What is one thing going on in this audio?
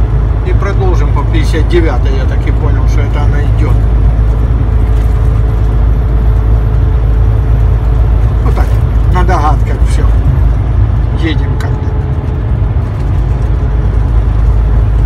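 A vehicle's engine rumbles steadily as it drives along.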